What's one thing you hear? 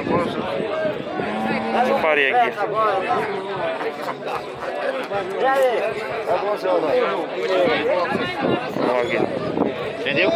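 Several men talk loudly over one another close by, outdoors.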